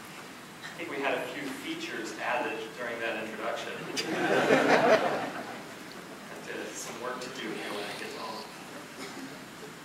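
A second man speaks through a microphone over loudspeakers.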